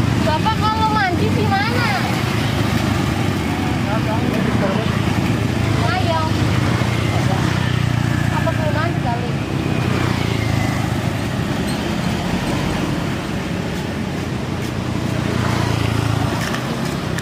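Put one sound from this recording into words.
Motorbikes and traffic rumble past on a nearby road.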